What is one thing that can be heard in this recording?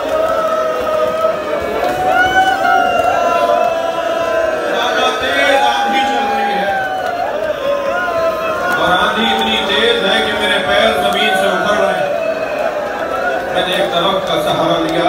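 A man speaks loudly and passionately into a microphone, heard through loudspeakers in an echoing hall.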